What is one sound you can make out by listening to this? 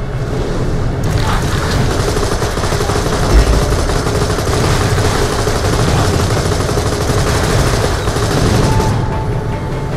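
A mounted gun fires in rapid bursts.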